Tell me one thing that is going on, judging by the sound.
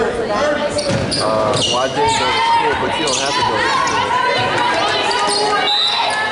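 Spectators shout and cheer loudly in a large echoing gym.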